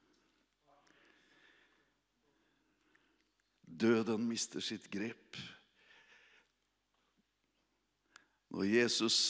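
A middle-aged man speaks into a microphone with emphasis, in bursts with pauses.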